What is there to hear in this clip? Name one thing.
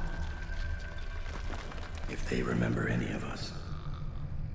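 A man speaks slowly and calmly.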